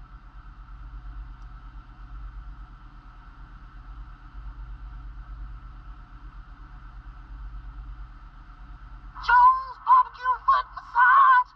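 A television plays muffled, tinny sound through a small speaker.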